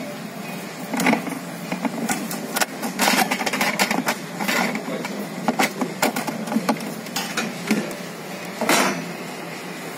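A filter scrapes and clicks as a hand twists it.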